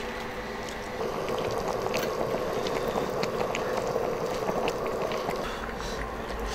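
A pot of soup bubbles and simmers.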